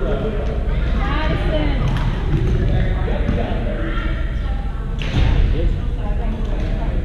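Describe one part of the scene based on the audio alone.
Young men talk and call out across a large echoing gym.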